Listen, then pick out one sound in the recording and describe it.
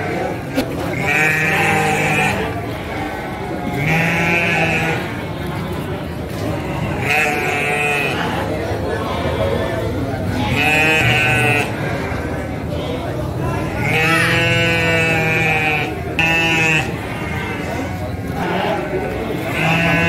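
Sheep bleat loudly and repeatedly close by.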